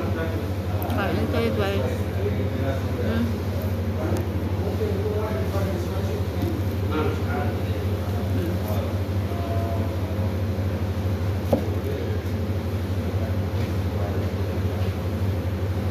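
A metal spoon clinks against a plate.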